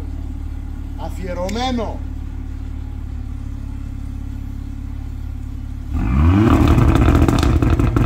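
A car engine revs loudly, its exhaust roaring and rising in pitch.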